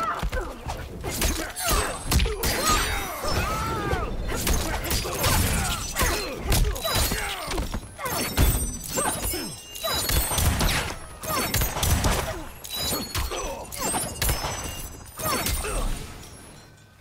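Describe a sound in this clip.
Punches and kicks land with heavy thuds in quick succession.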